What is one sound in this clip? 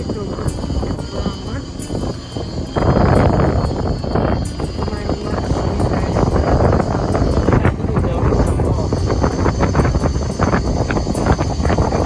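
A vehicle rumbles steadily along a road, heard from inside.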